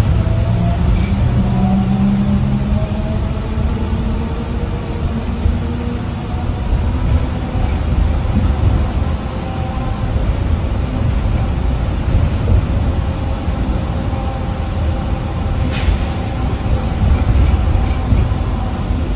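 The bus body rattles and knocks now and then.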